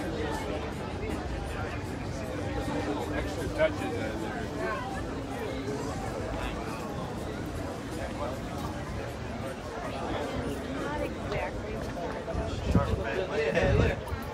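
A crowd of men and women chatter nearby outdoors.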